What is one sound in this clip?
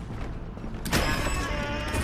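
A heavy door thuds as it is pushed.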